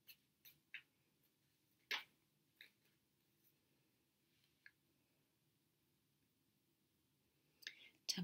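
Playing cards shuffle and tap softly close by.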